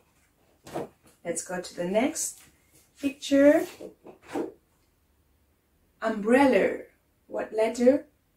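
A young woman speaks clearly and slowly, close by, as if teaching.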